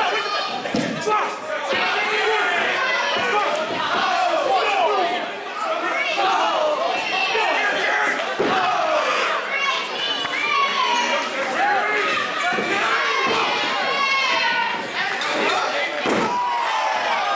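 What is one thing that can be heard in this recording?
Wrestlers slam down onto the ring mat with heavy thuds.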